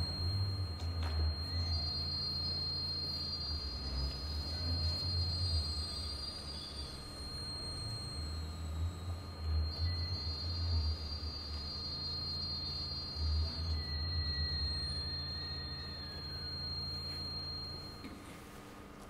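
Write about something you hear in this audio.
A recorder plays sustained high notes.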